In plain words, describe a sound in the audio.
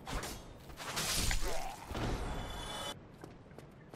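A sword slashes and strikes a body with a dull thud.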